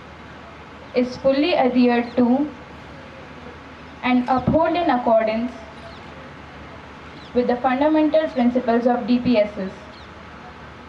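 A group of young men and women recite together in unison outdoors.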